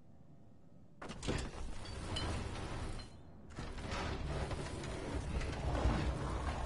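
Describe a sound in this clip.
A heavy wooden cabinet scrapes and creaks as it is pushed across a floor.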